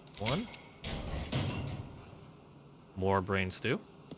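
A heavy metal locker door swings open.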